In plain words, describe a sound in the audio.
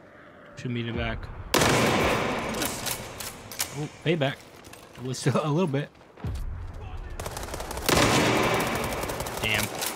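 A rifle fires loud shots that echo.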